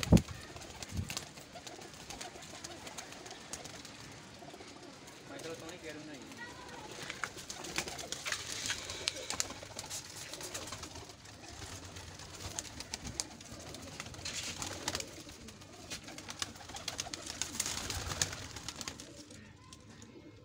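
Pigeons coo softly nearby.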